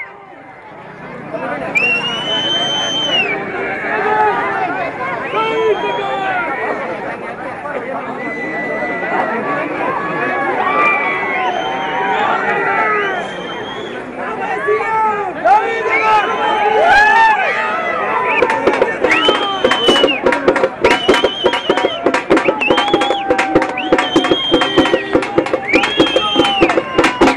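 A large crowd of men shouts and cheers excitedly close by.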